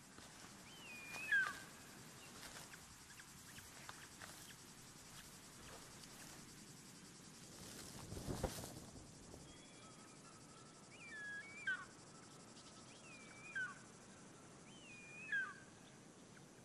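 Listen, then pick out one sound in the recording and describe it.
A young bird of prey gives shrill, sliding calls now and then.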